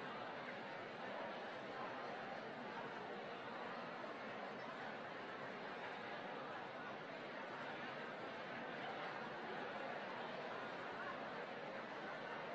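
A large audience chatters in a big echoing hall.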